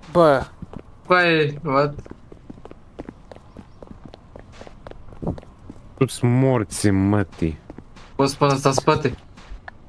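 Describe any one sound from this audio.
Footsteps tap quickly across a floor.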